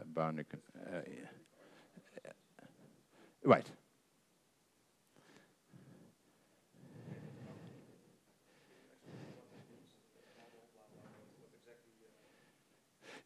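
A middle-aged man lectures calmly, heard through a microphone.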